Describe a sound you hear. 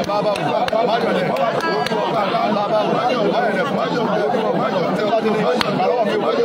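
A man speaks steadily and earnestly, close to the microphone.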